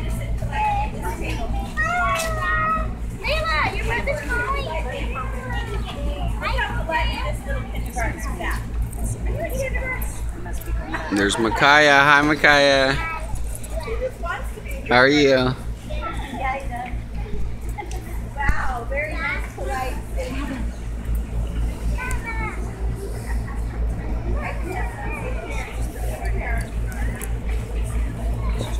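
Young children chatter and call out nearby.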